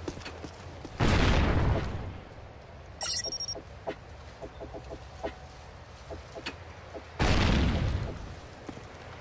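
Short menu tones beep a few times.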